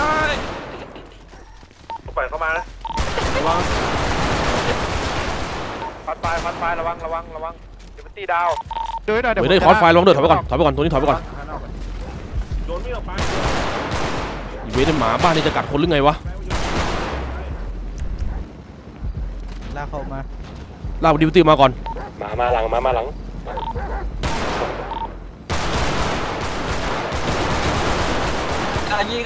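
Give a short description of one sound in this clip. Men talk over a crackling radio link, briskly and urgently.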